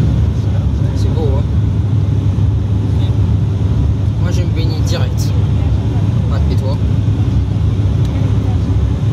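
Jet engines roar steadily inside an airplane cabin.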